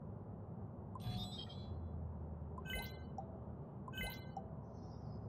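Short, bright menu chimes ring a few times.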